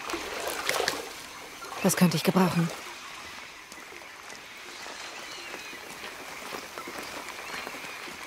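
Leafy plants rustle as someone pushes through dense undergrowth.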